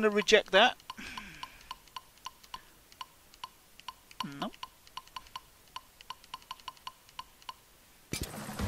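Short electronic ticks sound in quick succession as menu letters are scrolled.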